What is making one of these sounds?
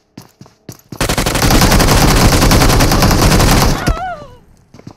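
A rifle fires a long, rapid burst of gunshots.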